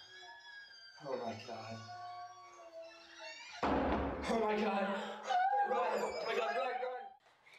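A young woman screams and cries out in distress nearby.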